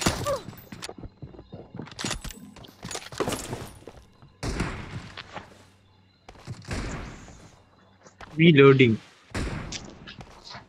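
Footsteps patter quickly over hard ground.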